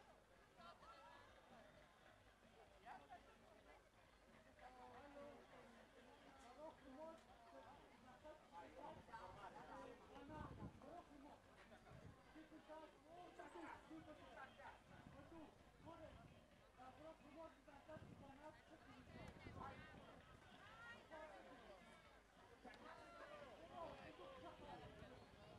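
A large group of voices sings outdoors through loudspeakers.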